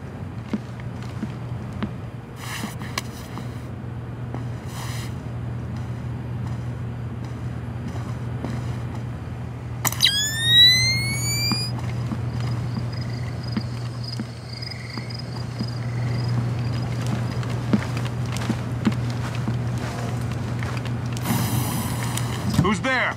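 Soft footsteps pad across a hard floor.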